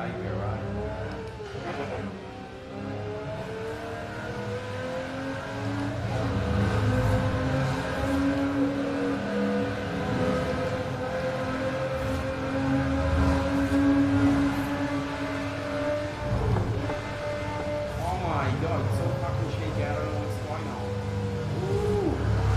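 A racing car engine roars steadily, rising in pitch as it speeds up.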